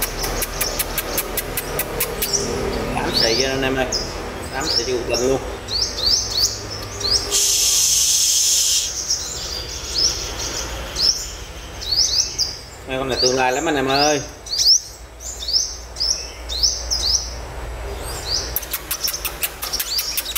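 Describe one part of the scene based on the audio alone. A small bird chirps rapidly in short, sharp, high notes close by.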